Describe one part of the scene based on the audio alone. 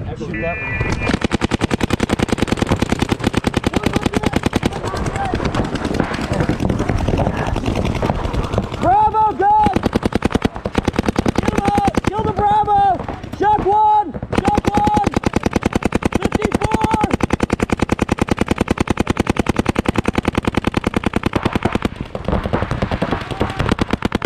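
Paintball guns fire in rapid bursts of sharp pops close by.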